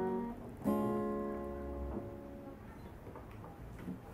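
An acoustic guitar is strummed, its chords ringing out and fading.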